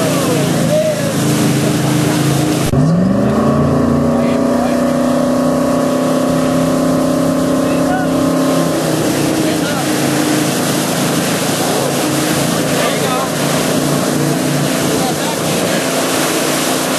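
A boat engine hums steadily and revs up as it pulls away.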